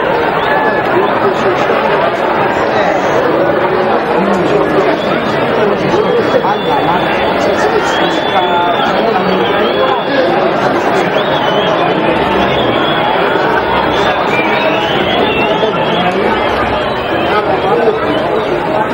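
A crowd murmurs and shouts in an open stadium.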